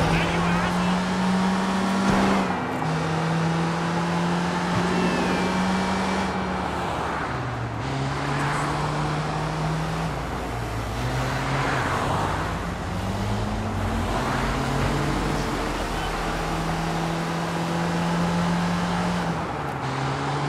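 A van engine drones steadily, its pitch stepping up and down as it shifts gears.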